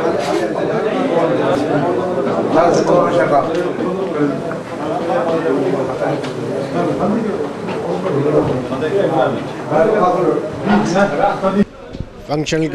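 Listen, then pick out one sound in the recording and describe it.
Many men talk over each other in a lively, crowded room.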